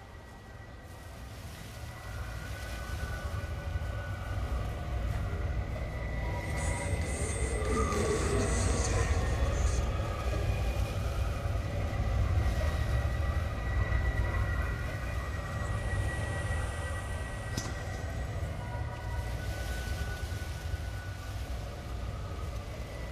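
Wind rustles through tall dry grass.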